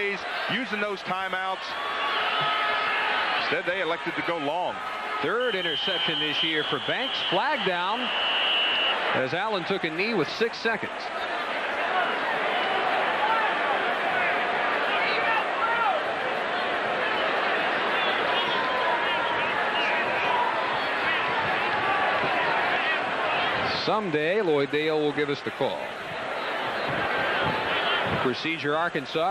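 A large crowd cheers and roars in an open stadium.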